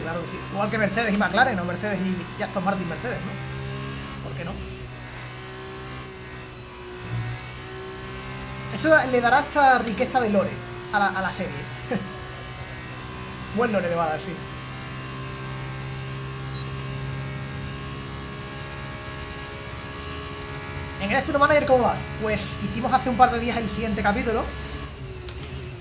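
A racing car engine hums steadily, with a high whine.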